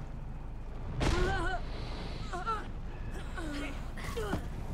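Flames whoosh and crackle in a burst.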